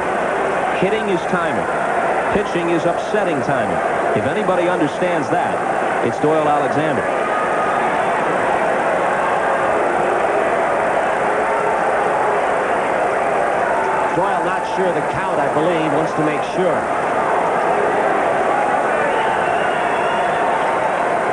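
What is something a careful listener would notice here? A large crowd murmurs steadily in an echoing stadium.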